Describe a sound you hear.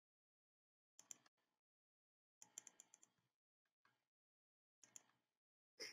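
Small clicks sound as pieces of track are set down.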